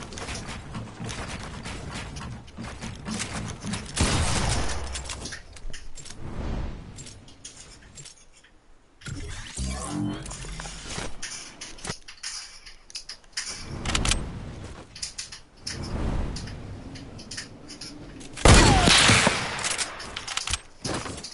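Video game building sounds clatter and thud quickly.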